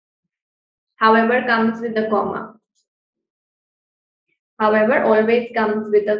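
A young woman speaks calmly over an online call microphone.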